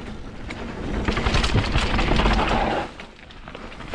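Tyres skid and spray loose dirt.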